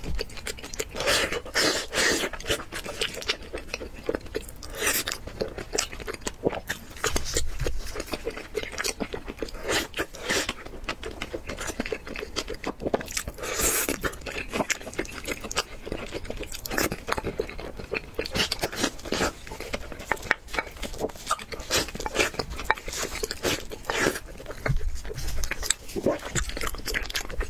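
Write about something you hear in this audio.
A young man slurps and chews food noisily, close up.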